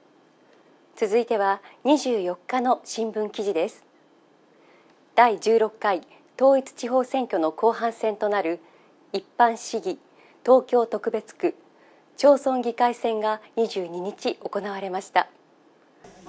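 A woman speaks calmly and clearly into a microphone.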